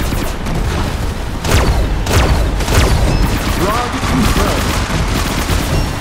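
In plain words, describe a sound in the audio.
Game explosions boom.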